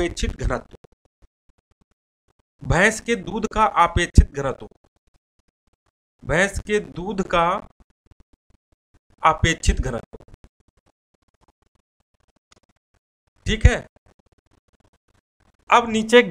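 A man speaks calmly in short phrases with pauses, close by.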